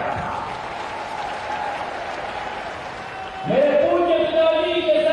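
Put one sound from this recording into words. A young man speaks forcefully into microphones, his voice ringing through loudspeakers in an open space.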